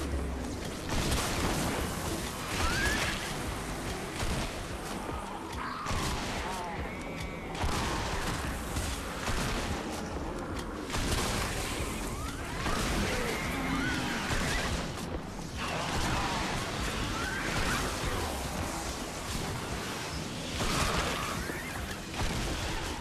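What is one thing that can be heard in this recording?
Game monsters growl and screech.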